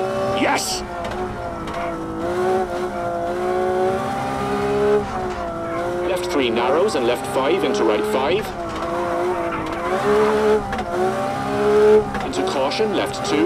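A rally car engine drones and revs steadily up and down.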